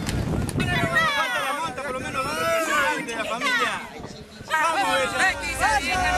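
A group of men and women cheer and talk close by.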